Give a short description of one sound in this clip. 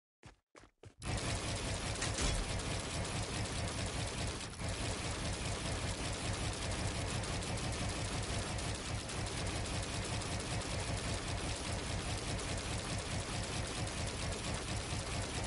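Quick game building sounds clatter and click.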